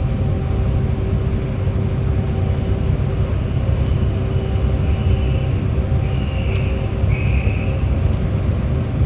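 Tyres roar on the road surface inside the tunnel.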